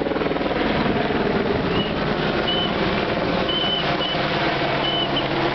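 A racing car engine roars and revs hard.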